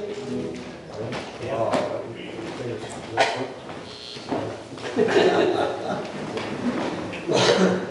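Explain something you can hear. A woman talks casually nearby in an echoing room.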